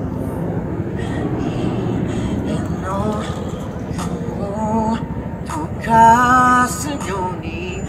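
A young woman sings into a microphone through a loudspeaker.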